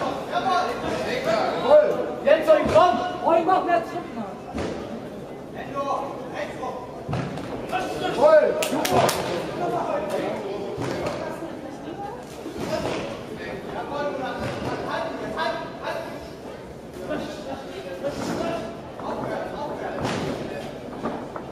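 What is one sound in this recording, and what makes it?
A crowd of spectators shouts and cheers in an echoing hall.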